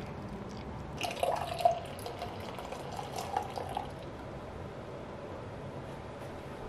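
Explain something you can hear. Coffee pours in a thin stream into a glass jar.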